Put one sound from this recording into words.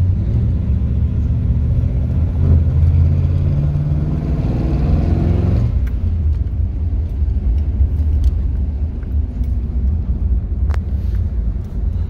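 An old car engine rumbles as the car drives along, revving up and then easing off.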